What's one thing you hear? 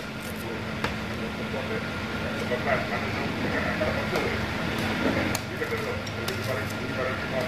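Knife tips tap and knock on a metal tabletop.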